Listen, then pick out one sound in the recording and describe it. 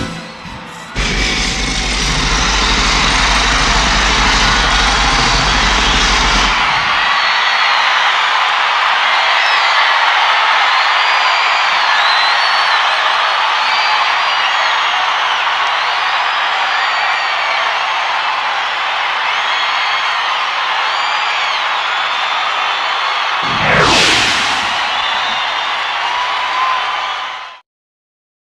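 A huge crowd screams and cheers in a large stadium.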